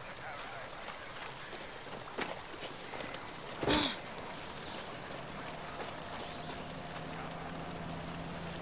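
Footsteps crunch over grass and dirt.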